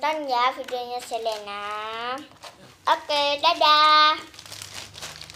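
A young girl speaks with animation close to a microphone.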